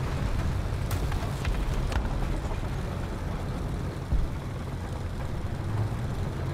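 Tank tracks clatter over cobblestones.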